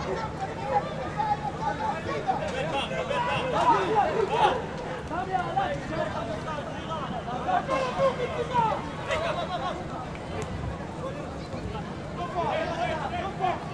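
Men shout and call out to each other across an open pitch.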